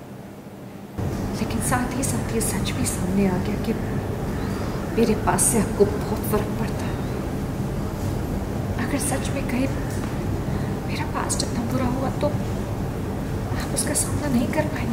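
A young woman reads lines aloud close to a microphone, speaking with feeling.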